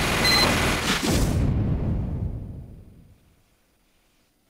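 A minigun rattles rapidly and then fades away.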